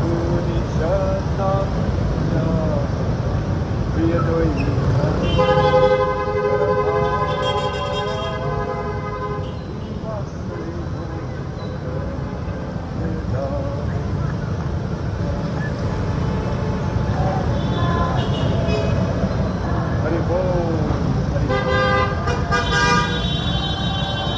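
Motorbike engines rumble and buzz nearby.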